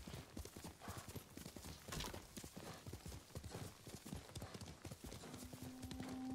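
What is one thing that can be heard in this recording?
A horse's hooves thud as it gallops over soft ground.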